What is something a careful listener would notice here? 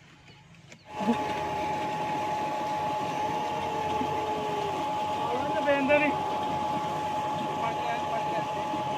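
Water gushes from a pipe and splashes into a flowing channel.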